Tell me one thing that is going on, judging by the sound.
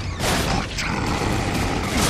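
Heavy boots thud on a wooden floor.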